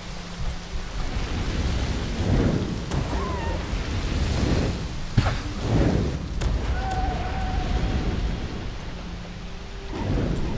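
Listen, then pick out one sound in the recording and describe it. Fire crackles and roars in bursts.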